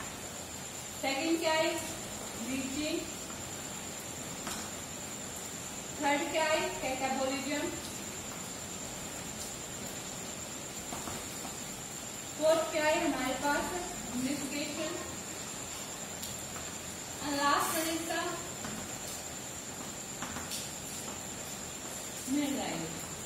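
A young woman speaks calmly in short phrases, close by.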